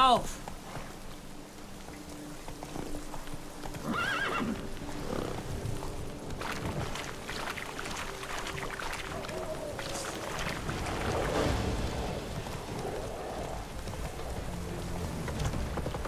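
A horse gallops, its hooves thudding on soft ground.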